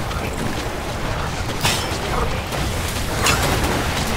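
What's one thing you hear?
Water splashes as a huge creature stomps.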